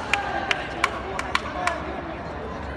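Rackets sharply hit a shuttlecock in quick succession.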